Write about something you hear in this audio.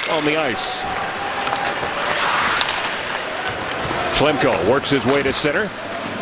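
A crowd murmurs steadily in a large arena.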